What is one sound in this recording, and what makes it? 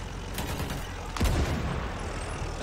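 A shell explodes with a loud boom.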